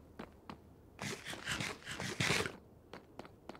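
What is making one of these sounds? Someone chews and munches food in quick bursts.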